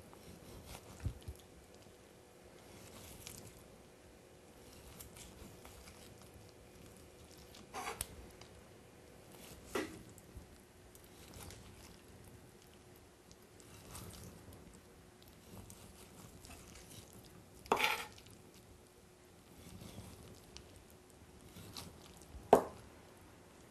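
A knife cuts through soft fruit and knocks on a wooden board now and then.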